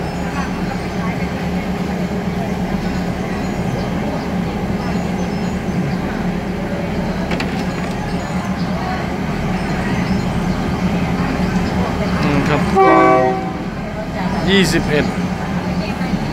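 A truck engine idles nearby with a steady low rumble.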